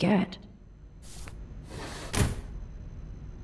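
A drawer slides open.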